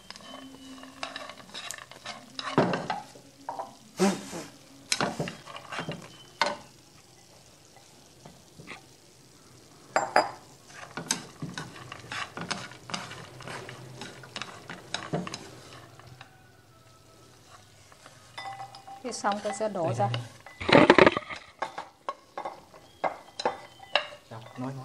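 Peanuts rustle and clatter as they are tossed in a pan.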